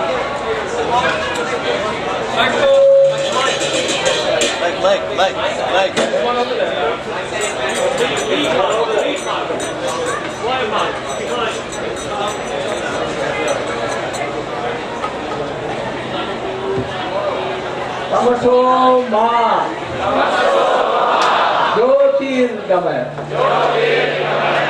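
An elderly man speaks into a microphone over a loudspeaker, outdoors.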